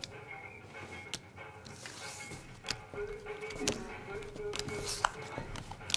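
Playing cards tap and shuffle softly.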